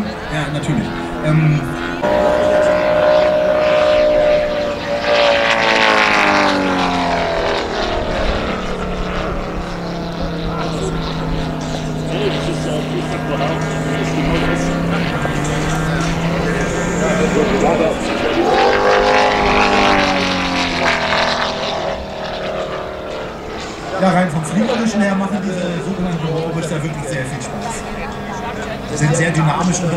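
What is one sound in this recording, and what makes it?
A small jet engine whines overhead, rising and falling in pitch as it passes.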